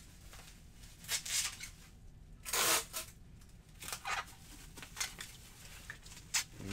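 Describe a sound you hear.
Items rustle and clatter close by as a man handles them.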